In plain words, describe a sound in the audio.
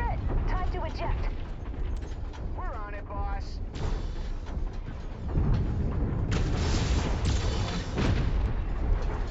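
A heavy machine rumbles steadily at low pitch.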